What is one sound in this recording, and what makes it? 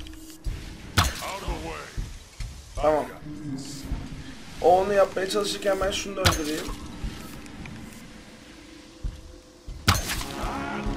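A bow string twangs as arrows are shot.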